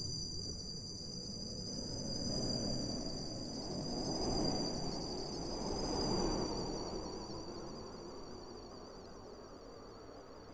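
A train rumbles past and fades into the distance.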